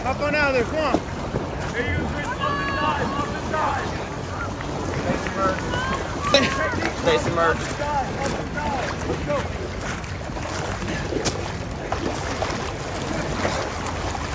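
A person crawls through shallow muddy water with wet sloshing.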